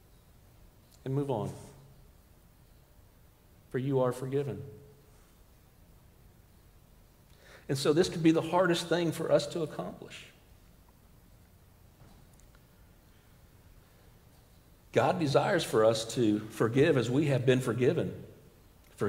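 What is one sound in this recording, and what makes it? A middle-aged man speaks calmly into a microphone in a large echoing room, with pauses between phrases.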